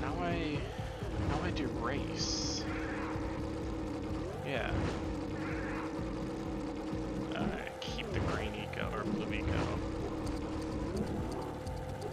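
Electronic game music plays with steady tones and swooping effects.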